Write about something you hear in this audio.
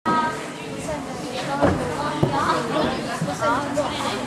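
A horse's hooves thud on soft ground in a large echoing hall.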